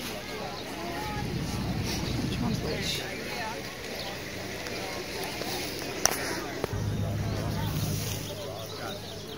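Wind blows in gusts against the microphone.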